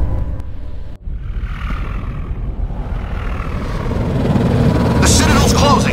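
A spaceship's engines rumble deeply as it flies past.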